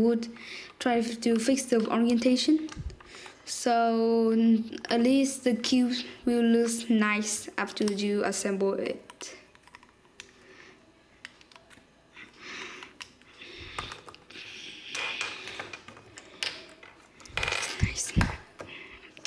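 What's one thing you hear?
Plastic puzzle cube pieces click and snap as they are taken apart.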